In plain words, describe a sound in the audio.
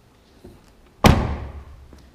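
A car door shuts with a heavy thud.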